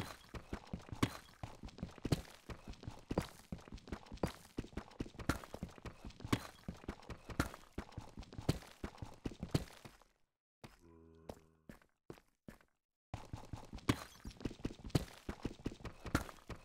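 A pickaxe chips rapidly at stone, with blocks crumbling away at a steady pace.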